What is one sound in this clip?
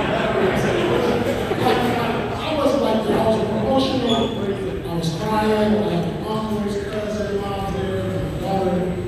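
Several men sing together into microphones over loudspeakers in a large room.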